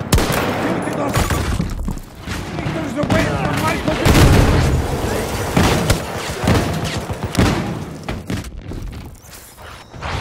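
Rifle shots crack sharply a few times.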